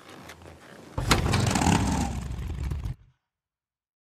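A motorcycle engine starts and rumbles.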